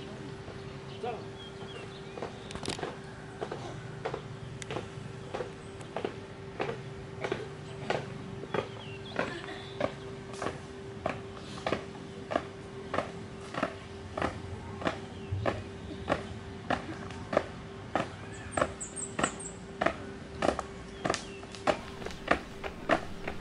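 Boots stamp on gravel in a steady marching rhythm, close by.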